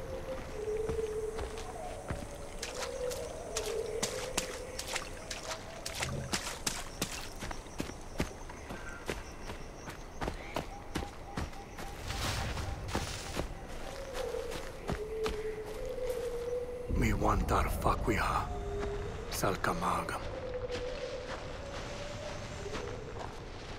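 Footsteps crunch steadily over dry ground and grass.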